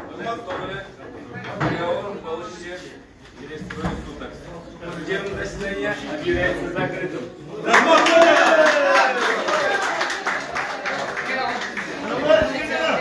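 A crowd of people talks and calls out at once.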